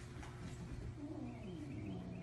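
A puppy whimpers softly close by.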